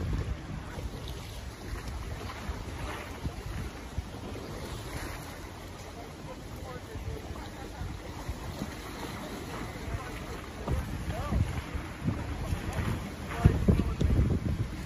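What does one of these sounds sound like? A boat engine idles nearby.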